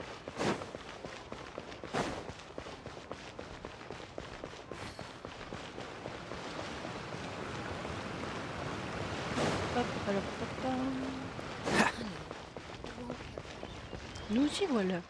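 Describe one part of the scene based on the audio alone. Footsteps patter quickly on stone.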